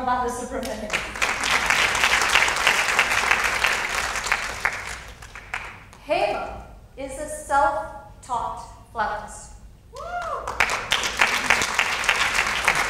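Several women laugh together through microphones.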